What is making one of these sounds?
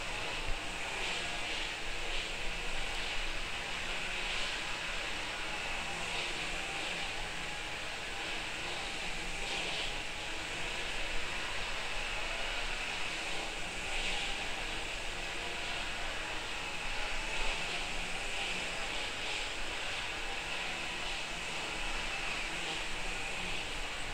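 A brush dabs and scrapes softly on canvas.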